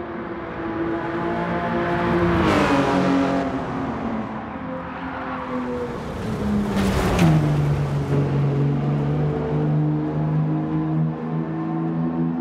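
A car engine roars loudly, its pitch rising and falling as it shifts gears.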